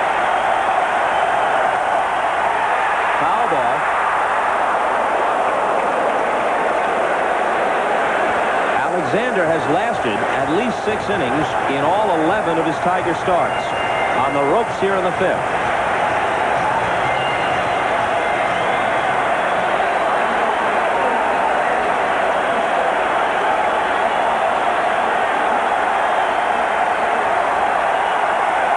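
A large crowd murmurs and cheers in a big stadium.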